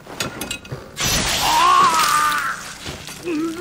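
An elderly man screams in agony.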